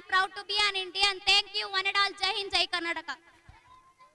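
A girl recites loudly through a microphone.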